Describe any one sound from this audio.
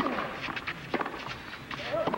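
A tennis racket strikes a ball hard.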